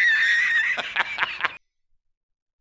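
A man laughs loudly and heartily.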